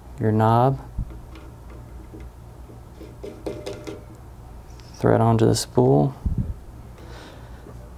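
A plastic knob scrapes softly as it is screwed onto a threaded metal post.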